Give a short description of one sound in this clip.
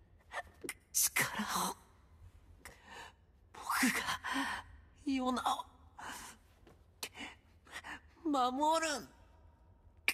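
A young man speaks weakly and haltingly, gasping between words.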